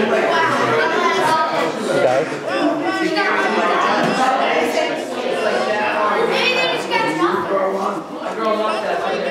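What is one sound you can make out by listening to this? A woman speaks to a group of children.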